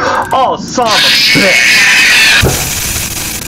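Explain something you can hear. A loud burst of static hisses.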